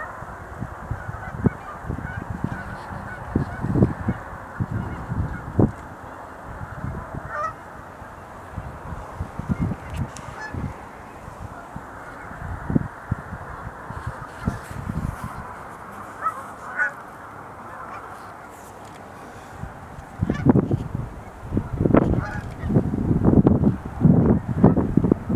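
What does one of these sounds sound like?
Wind gusts and rumbles outdoors.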